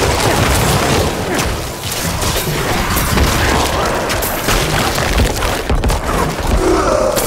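Spell blasts and weapon strikes crackle and thump in dense, rapid bursts.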